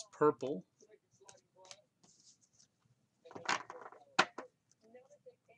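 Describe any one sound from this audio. Trading cards shuffle and slide in hands.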